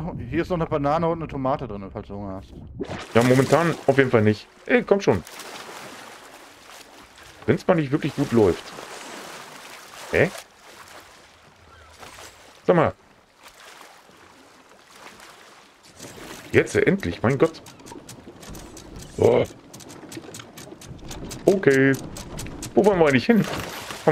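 Sea water laps gently against a wooden hull.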